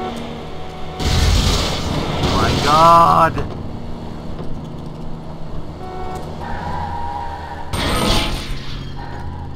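Tyres screech on wet asphalt as the car skids through turns.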